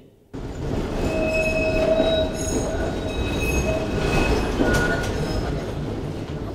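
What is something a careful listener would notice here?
Tram wheels squeal on the rails.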